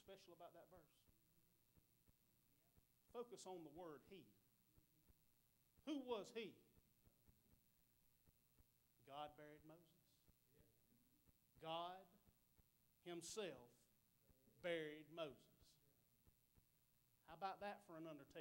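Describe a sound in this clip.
A man speaks with animation into a microphone, in short bursts with pauses, in a reverberant hall.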